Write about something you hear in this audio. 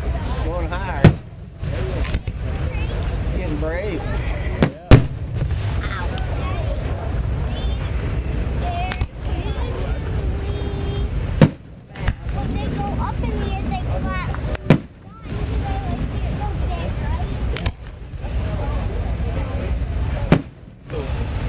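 Fireworks burst overhead with loud, sharp bangs.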